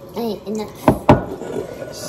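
Liquid pours into a cup.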